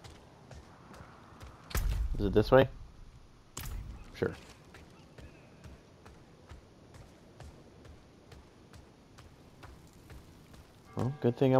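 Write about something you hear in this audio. Footsteps tap on stone.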